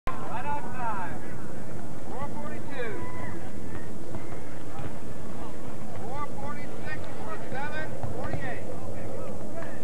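Spectators shout and call out outdoors.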